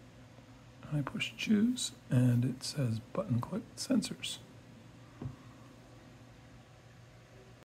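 A small button clicks.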